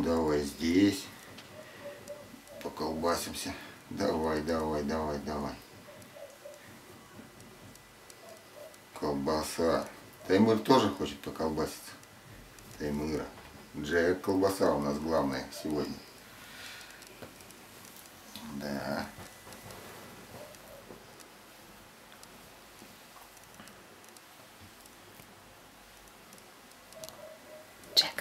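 A cat purrs softly.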